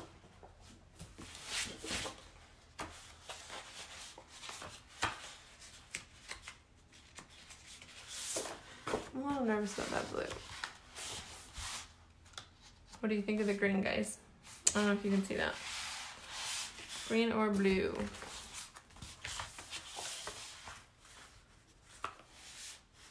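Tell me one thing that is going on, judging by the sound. Sheets of stiff paper rustle and flap as they are handled.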